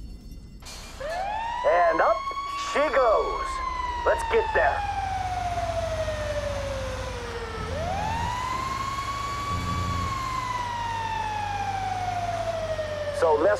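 A fire truck siren wails, rising and falling in long sweeps.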